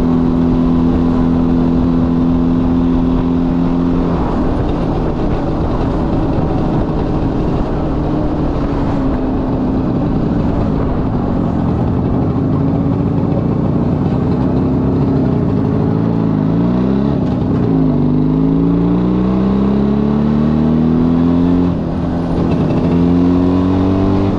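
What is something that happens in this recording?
A motorcycle engine hums steadily, its pitch dropping and rising as the rider shifts gears.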